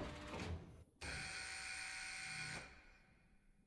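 A bright electronic chime rings steadily, then stops.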